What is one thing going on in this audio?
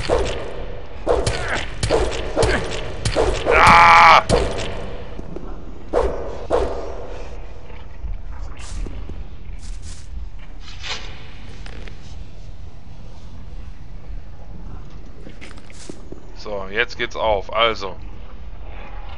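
Swords clang and swish in a fight.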